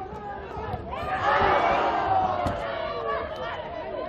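A crowd cheers and applauds in an open stadium.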